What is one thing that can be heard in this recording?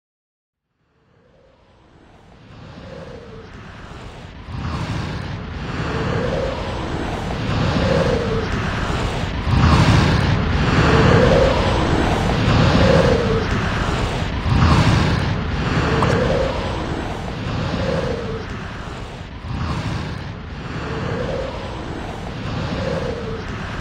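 Large wings flap with deep, rhythmic whooshes.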